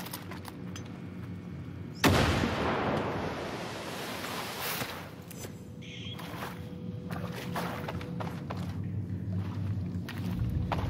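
Footsteps scuff along a hard floor in an echoing tunnel.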